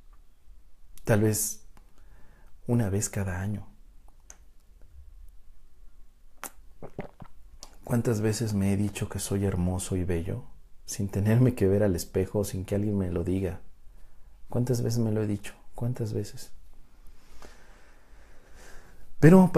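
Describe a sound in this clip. A man speaks calmly and close to a microphone, pausing often.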